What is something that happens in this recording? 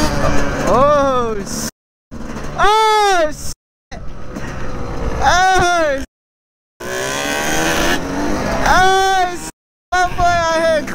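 Quad bike engines rev hard, rising and falling in pitch again and again.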